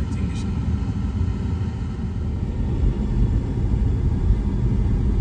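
A car engine hums low and steadily while driving.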